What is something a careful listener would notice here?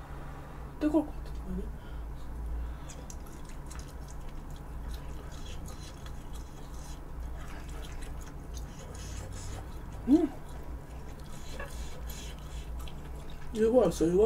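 A young woman chews food with wet, smacking sounds close to a microphone.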